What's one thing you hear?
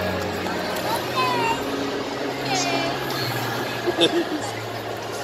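Young children squeal in high voices nearby.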